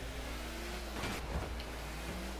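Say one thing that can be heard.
A ball is struck with a loud thump.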